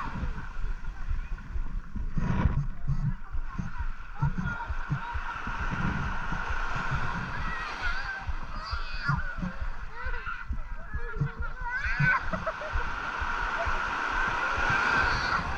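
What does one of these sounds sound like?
Small waves lap gently on the shore.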